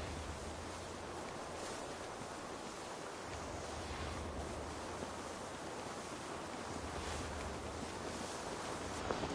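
Footsteps rustle softly through dry grass.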